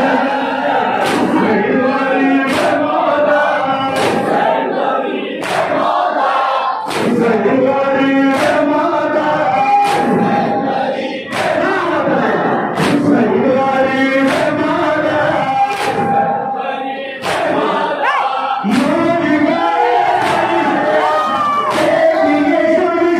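Men beat their chests in a steady rhythm of loud slaps.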